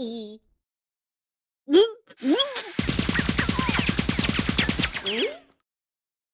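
A cartoon cat chatters in a high, squeaky voice close up.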